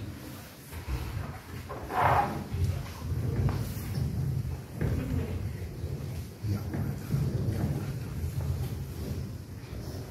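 Sponges rub and wipe across a stone slab.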